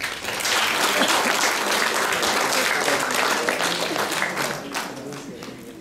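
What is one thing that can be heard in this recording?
A crowd applauds in a hall.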